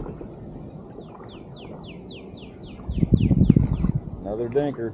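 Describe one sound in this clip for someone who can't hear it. A fishing reel whirs and clicks rapidly as line is wound in.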